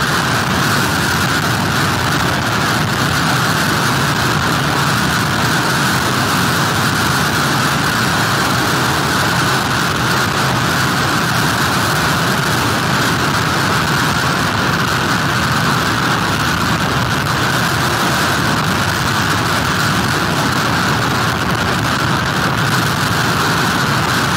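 Heavy surf crashes and churns steadily.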